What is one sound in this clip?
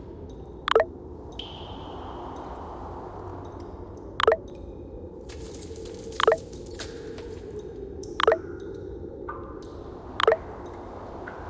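A short pop sounds again and again at a steady pace.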